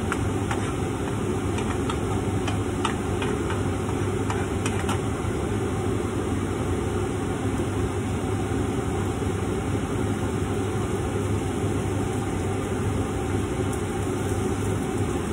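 Food sizzles steadily in hot pans.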